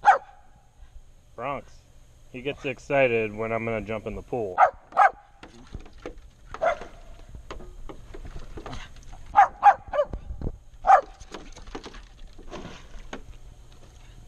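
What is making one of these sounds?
Small dogs bark sharply, close by.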